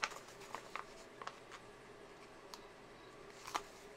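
Stickers peel off a backing sheet with a soft tearing sound.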